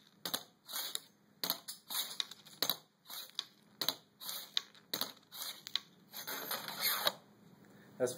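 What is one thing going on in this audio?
A metal bar slaps sharply against a hard surface.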